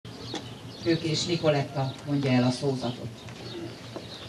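A middle-aged woman speaks through a microphone and loudspeaker, outdoors.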